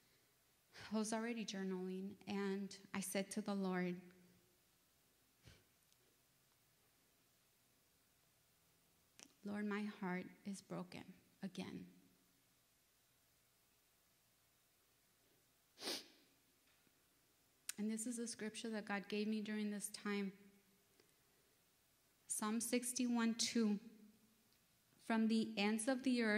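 A woman speaks calmly into a microphone, reading out with pauses.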